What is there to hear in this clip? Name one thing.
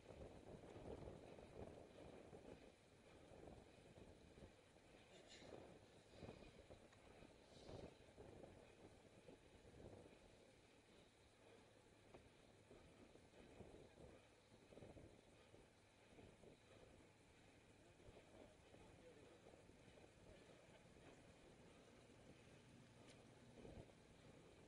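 Wind rushes steadily past a microphone outdoors.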